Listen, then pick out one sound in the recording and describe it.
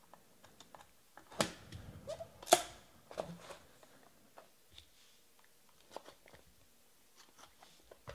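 Cardboard packaging scrapes and taps as hands open a box.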